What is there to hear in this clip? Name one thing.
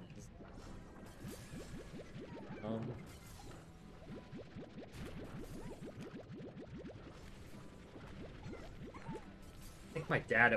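A game vacuum sucks up objects with rapid rising pops.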